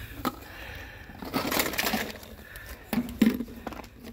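Plastic eggs tumble onto dry grass and leaves.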